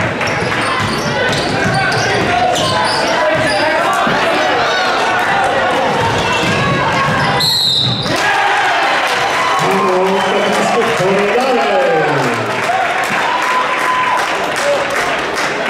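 A crowd chatters in an echoing gym.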